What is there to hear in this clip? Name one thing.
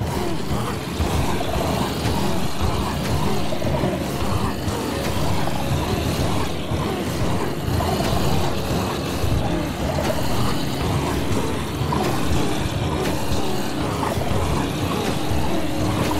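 Many zombies groan and moan together in a dense crowd.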